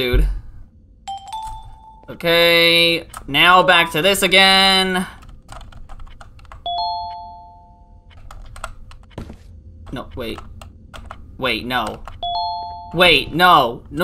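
Short game chimes ring out.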